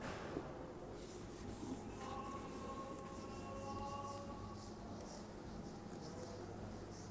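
A duster rubs quickly across a whiteboard.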